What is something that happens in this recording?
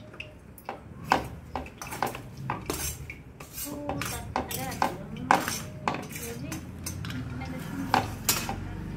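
Metal utensils clink against bowls.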